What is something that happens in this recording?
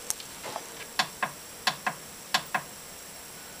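A button on a television clicks several times.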